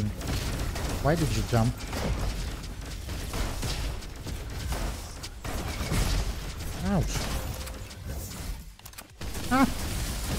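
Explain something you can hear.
Guns fire in quick bursts with sharp blasts and whooshes.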